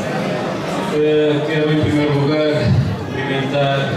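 A middle-aged man speaks calmly into a microphone, heard through loudspeakers.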